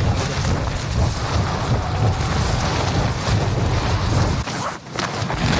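Wind rushes loudly during a fall through the air.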